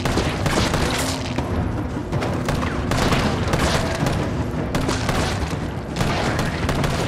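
Gunshots fire in rapid bursts.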